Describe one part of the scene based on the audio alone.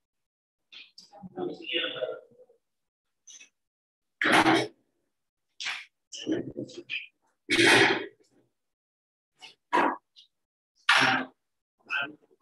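A woman speaks in short bursts, heard through an online call.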